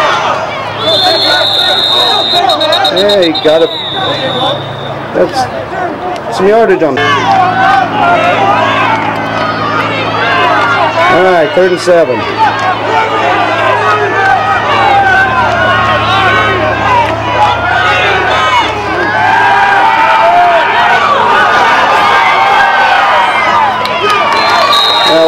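A crowd chatters and cheers.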